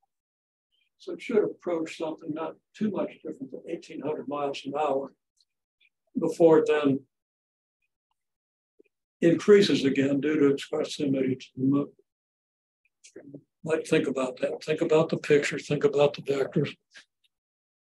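An elderly man speaks calmly, explaining in bursts with pauses.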